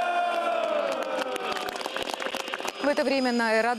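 A crowd of men clap their hands.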